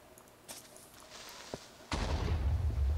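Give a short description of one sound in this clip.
A creature hisses sharply nearby.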